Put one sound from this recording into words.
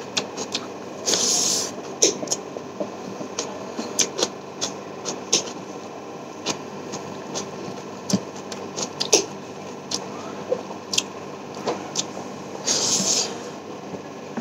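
A man slurps loudly.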